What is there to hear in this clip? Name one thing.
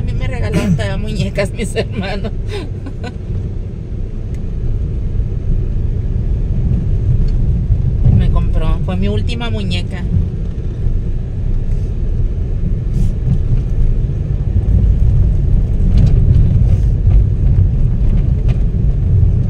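A car engine hums and tyres rumble on the road from inside a moving car.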